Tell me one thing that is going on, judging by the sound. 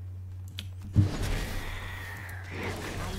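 A magic spell bursts with a bright whoosh.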